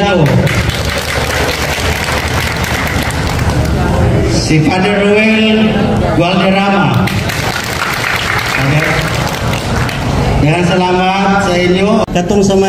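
A man speaks steadily into a microphone, heard through loudspeakers in an echoing hall.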